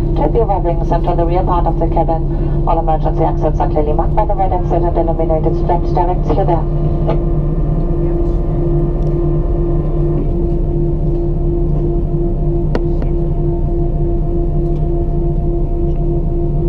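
Jet engines hum steadily from inside an aircraft cabin.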